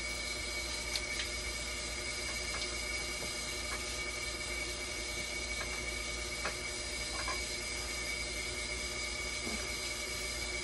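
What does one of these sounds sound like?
Tools click and tap against parts inside an open dialysis machine.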